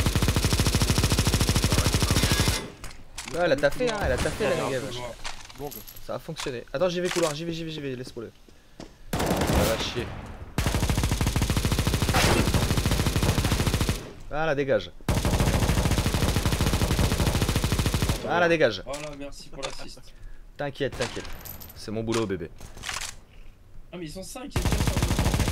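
A machine gun fires in long, rapid bursts.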